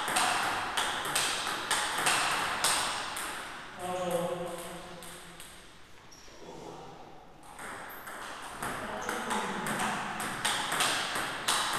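A ping-pong ball clicks back and forth on paddles and a table in an echoing hall.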